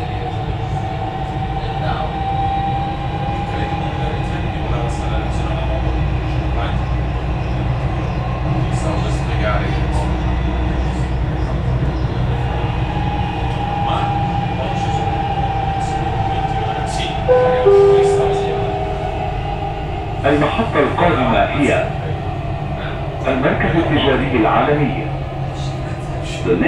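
Train wheels whine on the rails.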